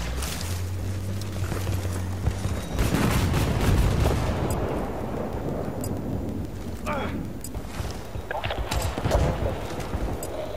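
An explosion booms with a fiery roar.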